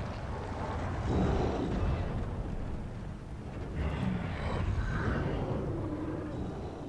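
A magical burst whooshes and crackles.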